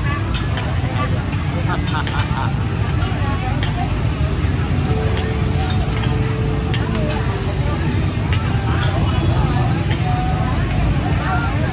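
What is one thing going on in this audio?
A crowd murmurs and chatters in a large, busy hall.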